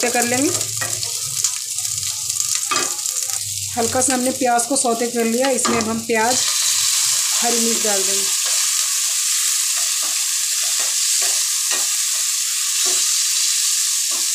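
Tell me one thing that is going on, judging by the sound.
A spatula scrapes and stirs against a metal pan.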